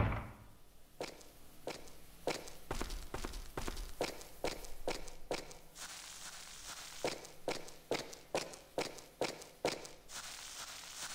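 Footsteps thud slowly on wooden boards.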